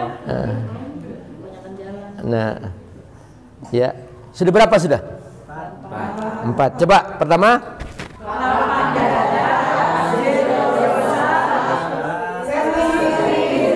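A man sings loudly into a microphone through a loudspeaker.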